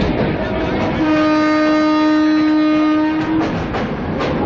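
A train horn blares loudly.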